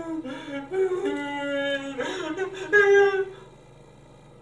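A young man wails and sobs loudly nearby.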